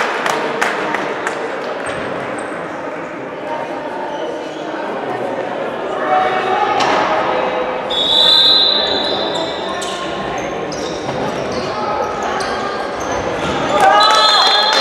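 A ball bounces on a hard floor in a large echoing hall.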